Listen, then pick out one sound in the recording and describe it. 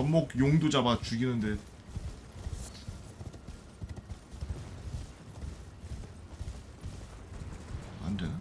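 A horse's hooves thud rapidly on the ground.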